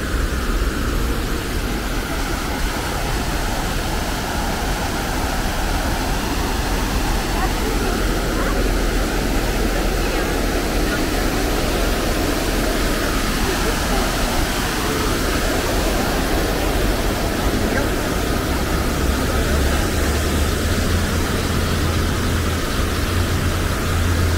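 Distant city traffic hums outdoors.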